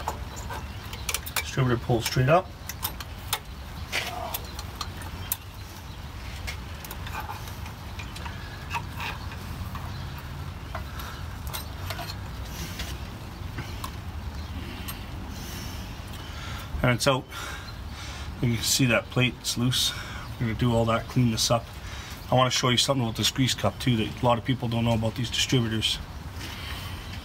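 Metal tools click and clank against engine parts.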